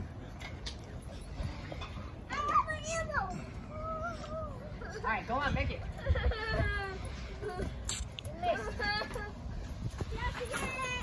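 A trampoline mat thumps and creaks as children bounce.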